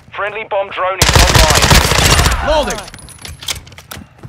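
Rapid gunfire rattles in a loud burst.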